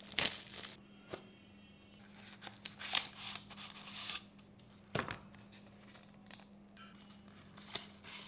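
Cardboard packaging slides and rustles as a box is opened.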